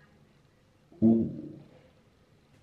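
A young man makes a short voiced sound close by.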